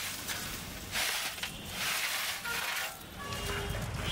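Ash and cinders pour out of a basket with a rough rush.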